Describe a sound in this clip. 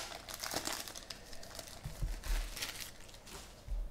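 Cards rustle and slide against each other.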